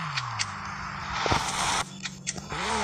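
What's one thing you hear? Tyres skid on dirt.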